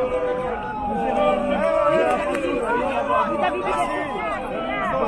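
A crowd of men and women talk and chant loudly outdoors close by.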